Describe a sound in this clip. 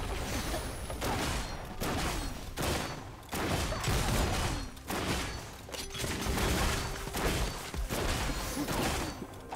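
Game spell effects crackle and burst in a fast battle.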